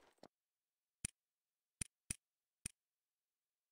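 Game menu buttons click sharply a few times.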